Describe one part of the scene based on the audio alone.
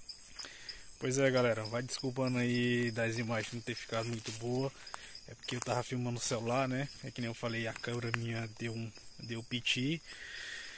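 A young man talks close to the microphone, calmly and with animation.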